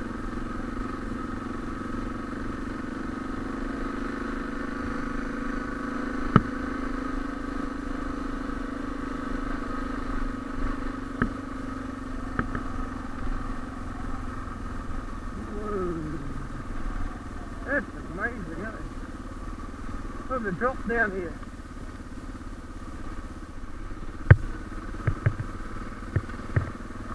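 A single-cylinder dual-sport motorcycle engine runs at a steady cruise.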